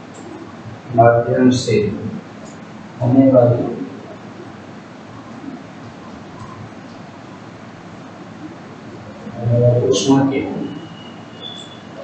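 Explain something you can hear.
A man speaks calmly, close by, in short phrases.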